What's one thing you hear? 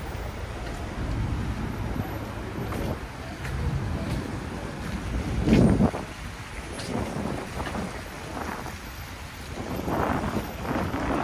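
Footsteps tread on a wet pavement.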